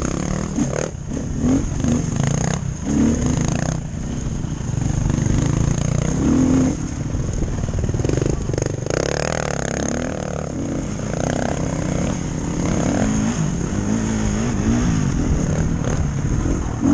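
A dirt bike engine revs up and down, riding along a dirt trail.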